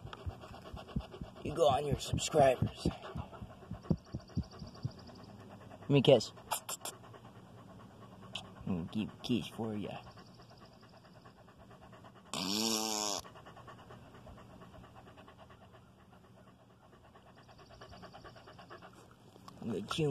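A dog pants close by.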